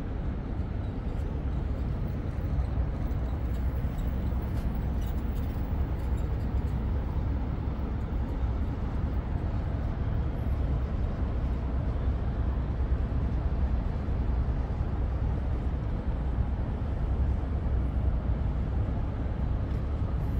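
A boat engine rumbles low and steadily close by.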